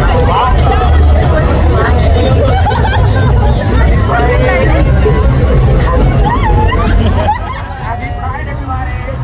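A large crowd outdoors cheers and chatters loudly.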